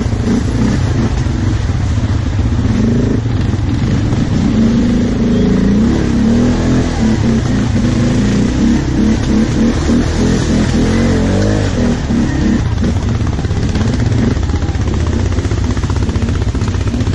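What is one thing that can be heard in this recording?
An ATV engine drones as it rides over a muddy trail.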